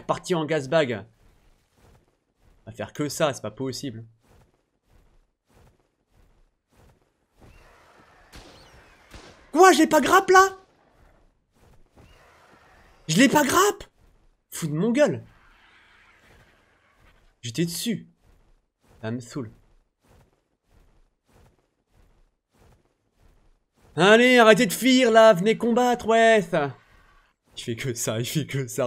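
A man speaks with animation into a close microphone, in short bursts.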